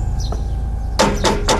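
A man knocks on a door with his knuckles.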